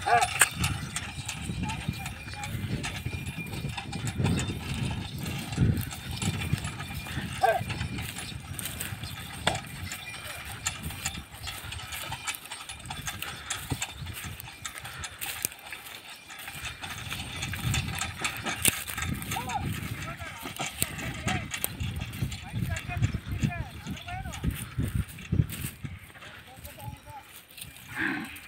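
A wooden cart rattles and creaks over rough ground.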